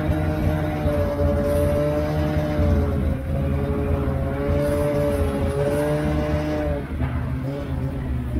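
A small engine drones steadily close by, rising and falling in pitch.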